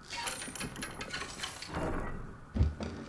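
Metal chains rattle.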